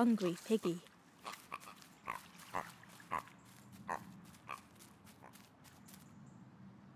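Small footsteps patter along a dirt path.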